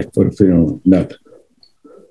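An elderly man speaks slowly over an online call.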